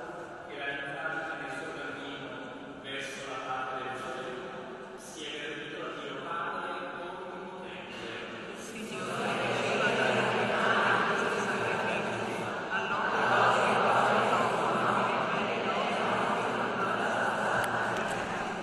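A man chants in a large echoing hall, heard through a loudspeaker.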